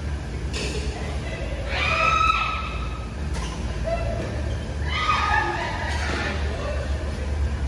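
Men call out and shout during play, echoing in a large hall.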